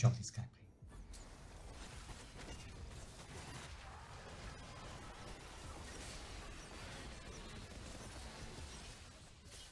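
Video game battle effects clash and crackle continuously.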